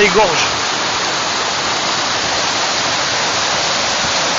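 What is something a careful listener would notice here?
A rushing stream of water flows steadily over rocks nearby.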